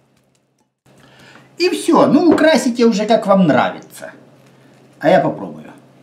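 A fork scrapes and clinks against a glass bowl.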